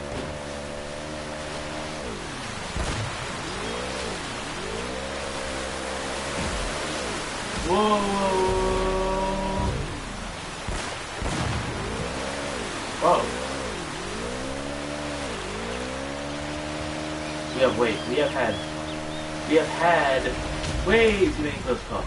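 A jet ski engine whines and revs, rising and falling in pitch.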